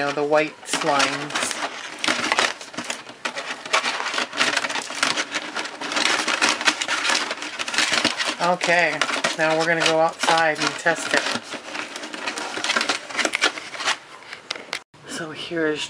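A plastic jug crinkles and rustles up close.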